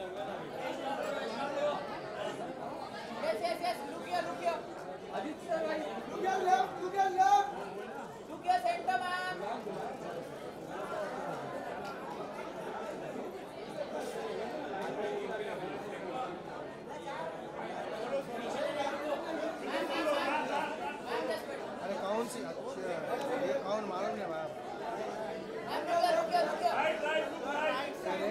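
A crowd of people chatter loudly all around.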